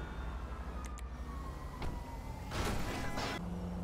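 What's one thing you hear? A car engine hums as a car drives along a road.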